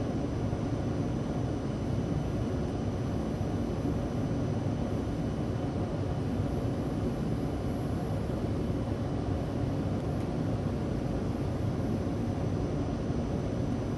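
A train car rumbles steadily as it runs along the tracks.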